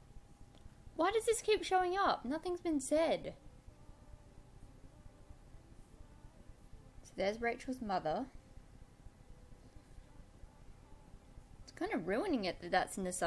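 A woman narrates calmly, close by.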